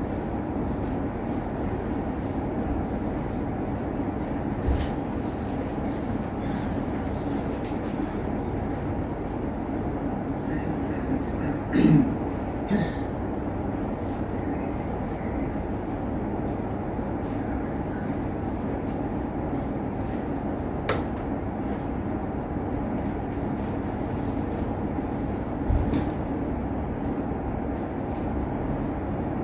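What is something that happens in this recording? An elderly man murmurs prayers quietly nearby.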